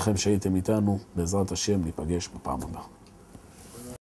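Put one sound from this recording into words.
A middle-aged man speaks calmly into a microphone, close up.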